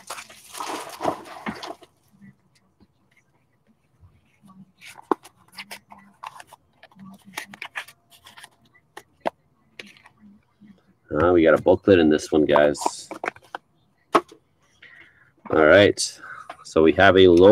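Plastic card packs crinkle and rustle in someone's hands.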